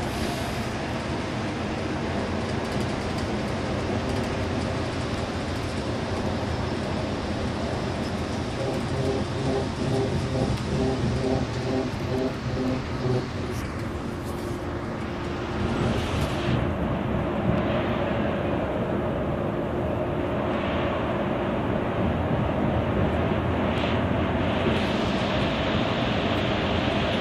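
A bus engine hums steadily from inside the cab.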